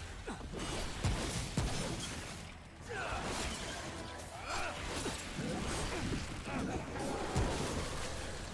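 Gunshots bang repeatedly in a video game.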